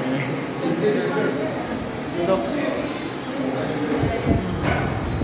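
Young people chatter and talk nearby.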